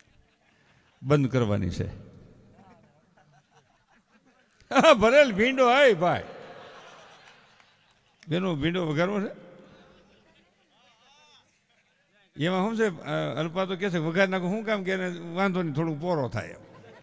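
An elderly man sings and speaks with feeling into a microphone, heard through loudspeakers in a reverberant space.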